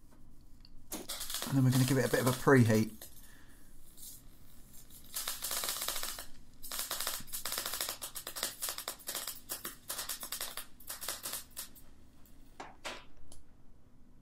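A welding arc crackles and hisses in bursts.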